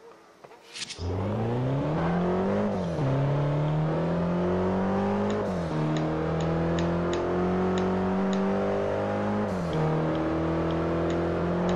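A car engine revs hard, rising and dropping in pitch as it shifts gears.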